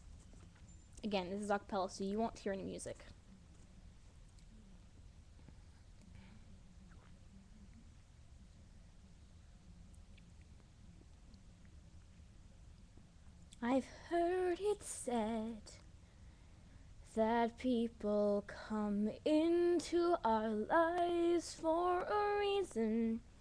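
A teenage girl sings softly close to the microphone, in short bursts with pauses.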